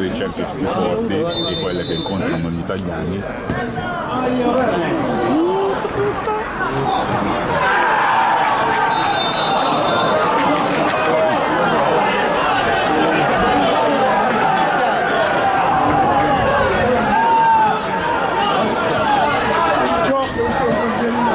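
Football players shout to each other across an open pitch outdoors.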